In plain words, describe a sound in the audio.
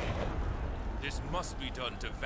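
A man speaks firmly and commandingly.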